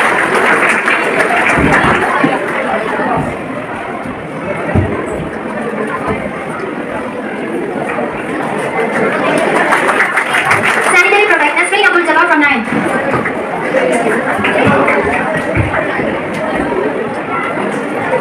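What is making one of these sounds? A crowd claps and applauds in an echoing hall.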